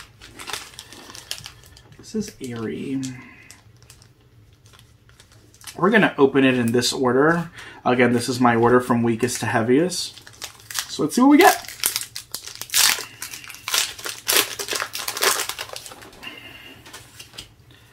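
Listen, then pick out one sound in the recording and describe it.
A foil card wrapper crinkles in handling.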